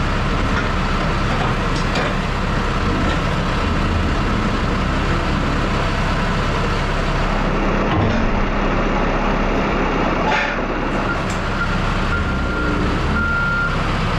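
A forklift engine rumbles steadily nearby.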